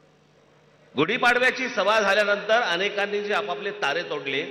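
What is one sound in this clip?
A man speaks forcefully through a microphone and loudspeakers.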